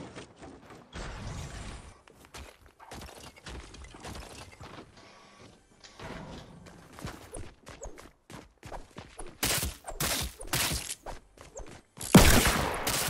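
Footsteps clatter quickly across a roof.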